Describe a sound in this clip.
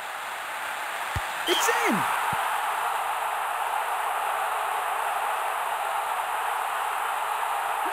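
A large crowd roars and cheers in a stadium, swelling after a goal.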